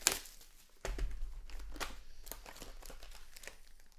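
A cardboard box flap scrapes open.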